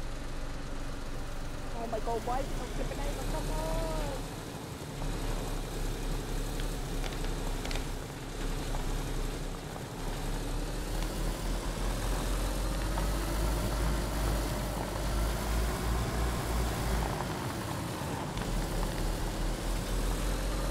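A car engine drones steadily and climbs in pitch as the car speeds up.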